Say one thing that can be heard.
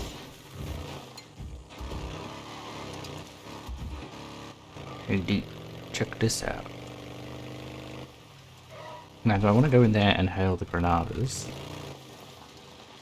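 A motorcycle engine drones and revs.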